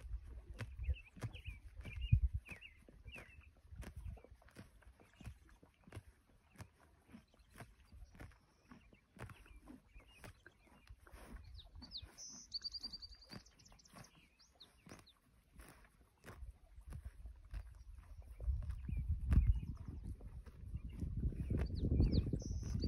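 A horse tears and crunches grass close by.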